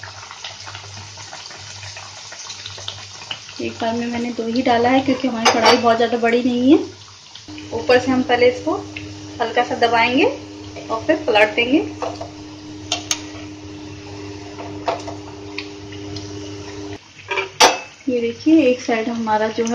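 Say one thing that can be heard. Hot oil sizzles and crackles steadily.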